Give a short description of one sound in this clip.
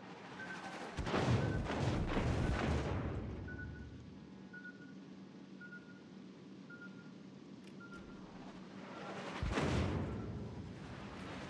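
Heavy guns fire with loud, deep booms.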